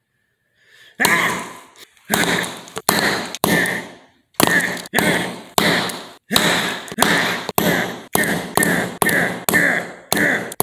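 A rubber mallet pounds repeatedly on a hard floor.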